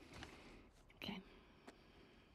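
A young girl answers briefly and softly.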